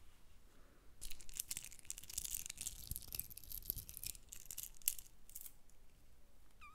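Fingers scratch and crackle close to a microphone.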